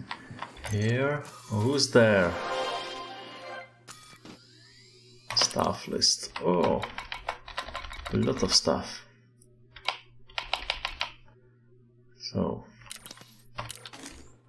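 Short electronic beeps and clicks sound from a computer terminal.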